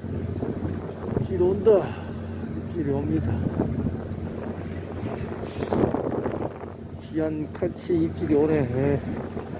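Rough sea waves churn and splash outdoors.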